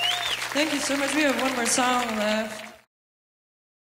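An acoustic guitar strums.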